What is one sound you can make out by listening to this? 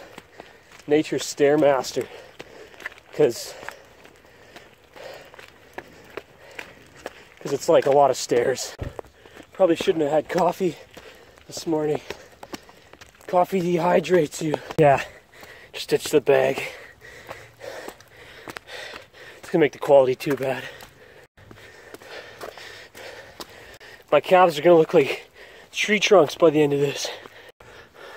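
A man talks close to a microphone, slightly out of breath, in short bursts.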